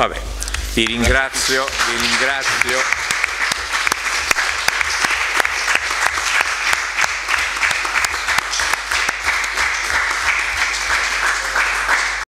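People applaud steadily.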